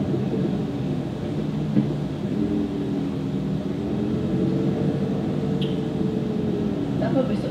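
A man talks close to a microphone.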